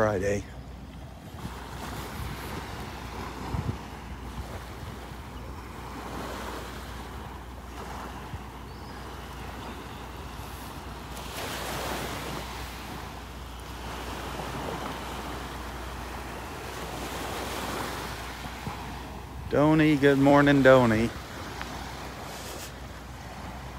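Wind blows across the open beach.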